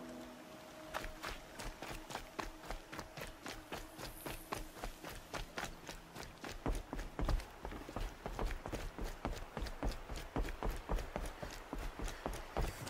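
Quick running footsteps thud on dirt and then on wooden planks.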